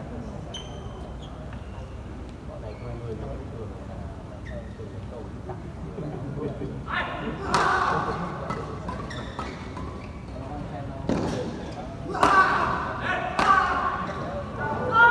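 Shuttlecocks are struck with rackets in a large echoing hall.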